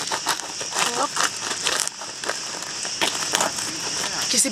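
A knife saws and crunches through a crusty loaf of bread.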